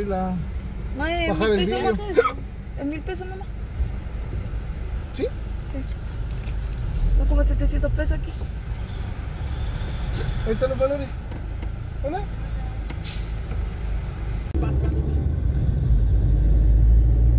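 A car engine hums low from inside the car.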